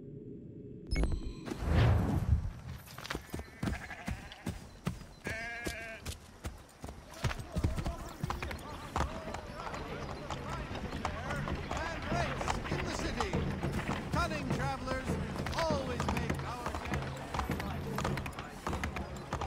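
A horse's hooves clop steadily on a cobbled street.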